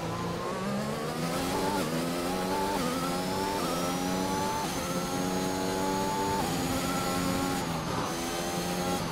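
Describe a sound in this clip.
A racing car engine roars, its pitch climbing through each gear and dropping at every shift.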